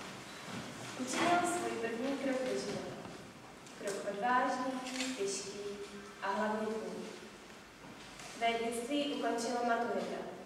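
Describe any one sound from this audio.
A young woman sings nearby in an echoing hall.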